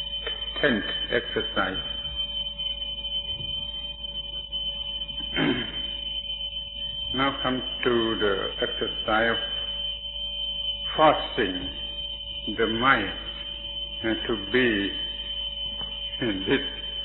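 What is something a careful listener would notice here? An elderly man speaks calmly and slowly, in short phrases with pauses.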